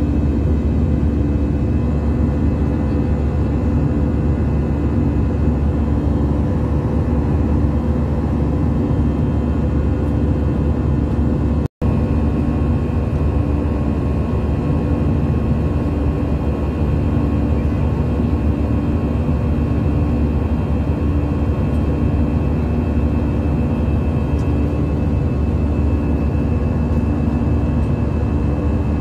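A jet engine roars steadily in the cabin of a plane in flight.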